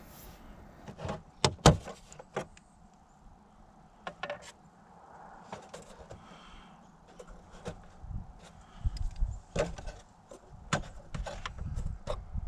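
Plastic parts click and knock as an engine cover is handled.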